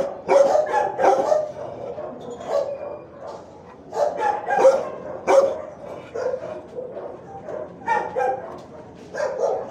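A dog barks loudly and repeatedly in an echoing room.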